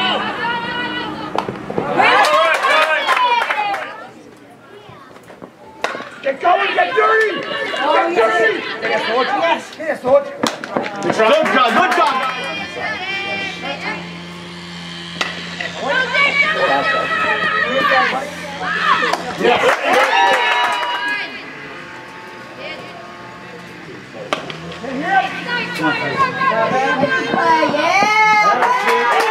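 Children and adults cheer and shout loudly outdoors.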